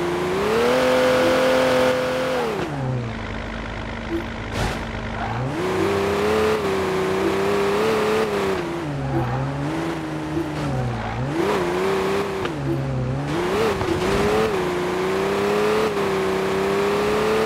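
A game car engine roars, its pitch rising and falling as the car speeds up and slows down.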